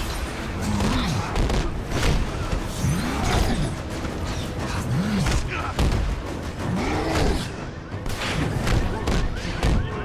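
Fires roar and crackle.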